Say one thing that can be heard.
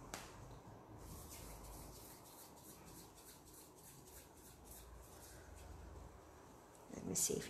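Hands rub together softly.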